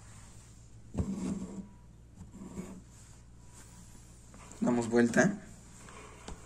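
A cloth hoop rustles and knocks as it is handled close by.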